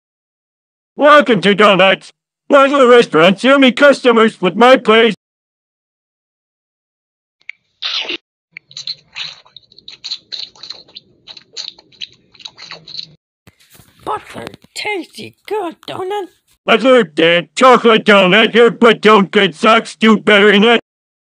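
A man speaks loudly and with animation in a cartoonish voice.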